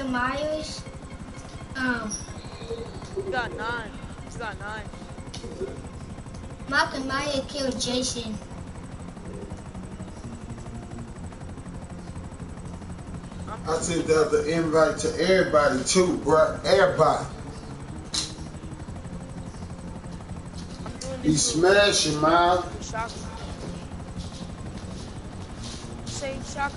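A helicopter's rotor whirs steadily overhead.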